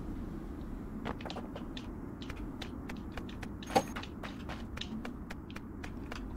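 Footsteps patter quickly on pavement.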